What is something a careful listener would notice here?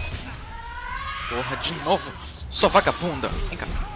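A blade swishes and strikes in quick, sharp blows.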